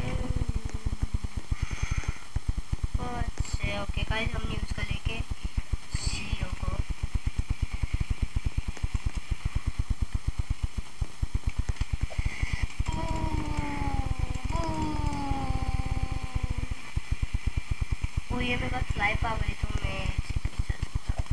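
A young boy talks close to a microphone with animation.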